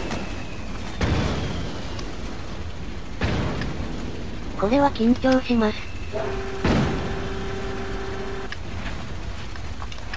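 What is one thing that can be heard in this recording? A heavy armored vehicle rumbles past.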